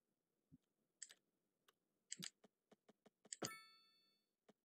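Soft interface clicks tick as a road is laid out.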